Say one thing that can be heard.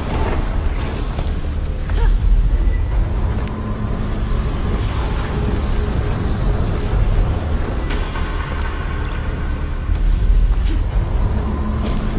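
Footsteps land with soft thuds on stone.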